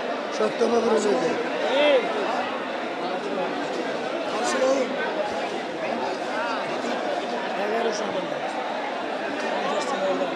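A crowd of men talks loudly all around, close by.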